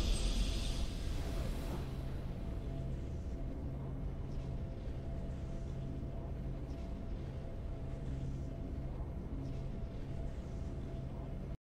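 Triumphant music plays softly and steadily.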